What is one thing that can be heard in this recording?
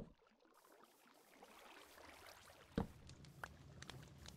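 Lava bubbles and pops.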